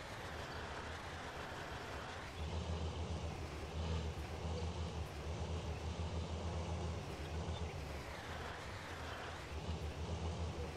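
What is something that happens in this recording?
A diesel tractor engine rumbles steadily, revving harder at times.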